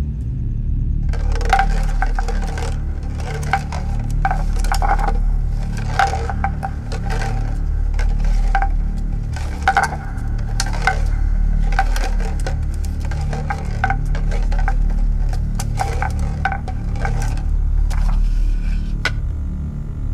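A glass bottle rolls back and forth on a hard counter, clinking and ringing.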